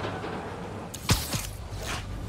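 A sharp whoosh snaps by.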